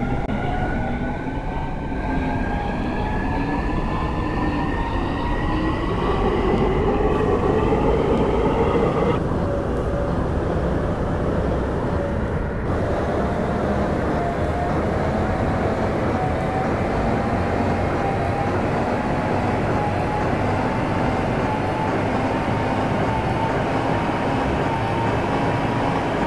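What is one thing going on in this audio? Train wheels rumble steadily over the rails.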